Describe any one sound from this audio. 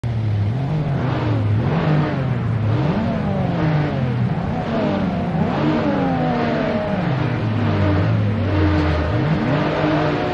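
Several racing car engines rev up and down.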